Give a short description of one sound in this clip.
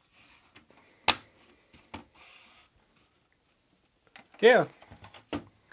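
A plastic case knocks and clatters on a hard surface.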